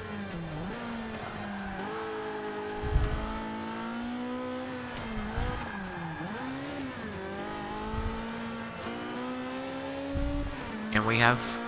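A race car engine revs high and drops in pitch as it shifts gears.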